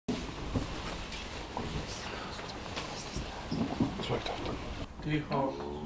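Chairs knock and scrape as several men sit down at a table.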